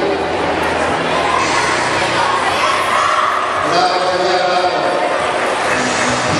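A crowd of spectators chatters loudly in a large echoing hall.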